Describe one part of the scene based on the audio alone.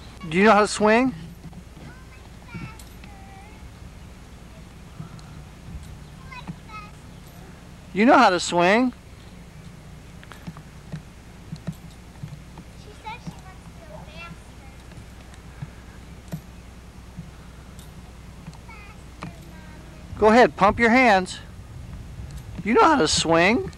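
A young child calls out with animation close by.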